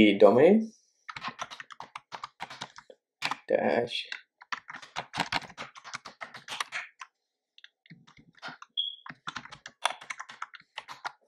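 Keyboard keys click rapidly as someone types.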